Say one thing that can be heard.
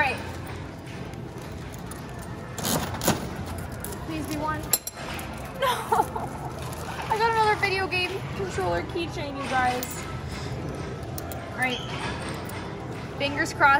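A coin-operated toy dispenser's crank turns with ratcheting clicks.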